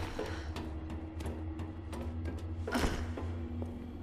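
Hands and feet clank on metal ladder rungs.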